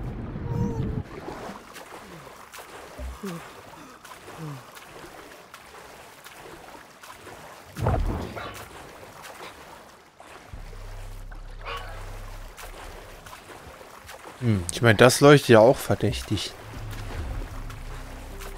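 Water splashes with swimming strokes at the surface.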